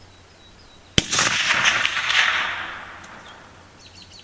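A .30-06 bolt-action rifle fires a single shot outdoors, the report echoing across open fields.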